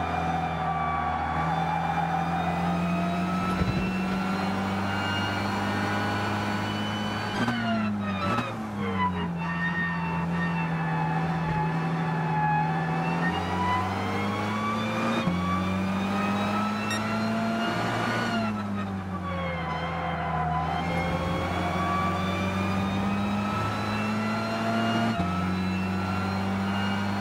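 A racing car engine roars steadily, rising and falling in pitch as the car speeds up and brakes through corners.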